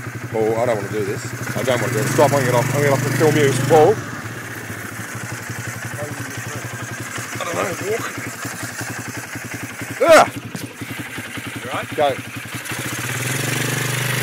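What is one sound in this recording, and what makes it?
A quad bike engine runs and revs.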